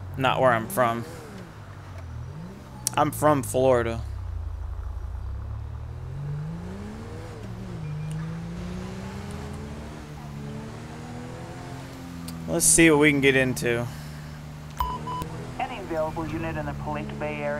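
A car engine hums and revs up and down as a car drives.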